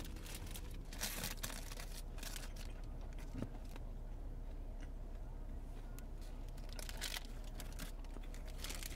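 A plastic bag crinkles and rustles as hands unwrap it.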